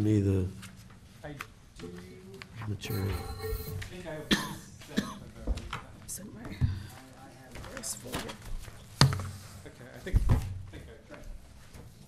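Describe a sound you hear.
Adults speak in turns through microphones.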